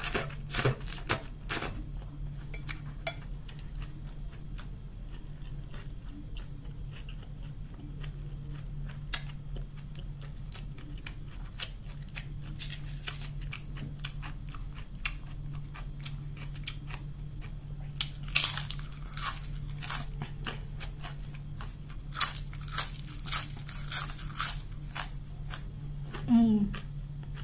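A young woman chews food wetly close to a microphone.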